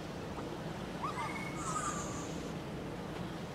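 Small creatures chirp in high, squeaky voices.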